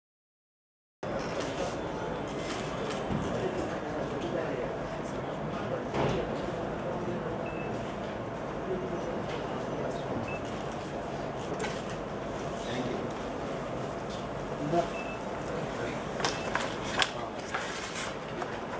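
A crowd murmurs and chatters in a large room.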